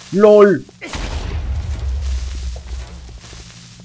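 A video game explosion booms.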